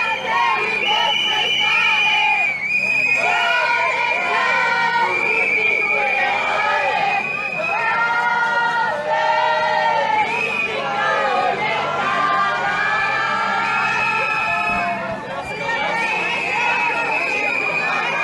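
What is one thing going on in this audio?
A crowd of young women sings loudly together outdoors.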